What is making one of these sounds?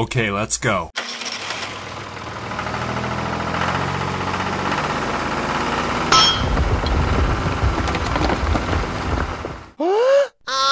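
A toy tractor's motor whirs steadily.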